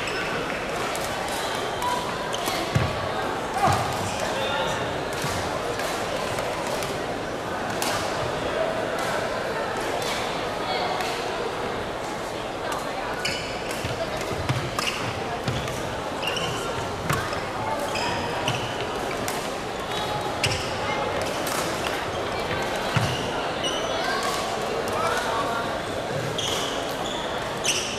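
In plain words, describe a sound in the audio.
Rackets strike a shuttlecock in quick rallies in an echoing hall.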